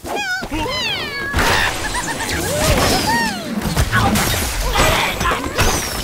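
A slingshot stretches and snaps with a launch.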